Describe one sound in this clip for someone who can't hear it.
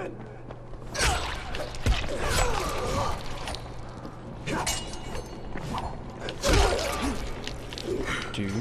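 A machete slashes and thuds into a body.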